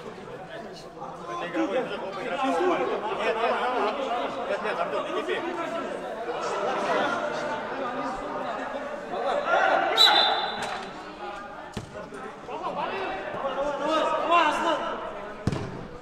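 Young men shout and argue with animation, heard in a large echoing hall.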